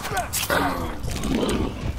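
Heavy blows land in a close scuffle.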